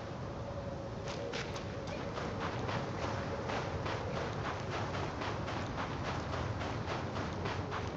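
Footsteps crunch quickly through deep snow.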